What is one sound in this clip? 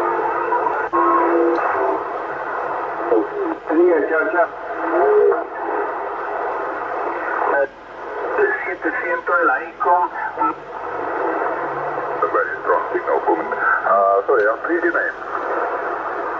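A radio receiver gives off warbling, garbled bursts of distant transmissions.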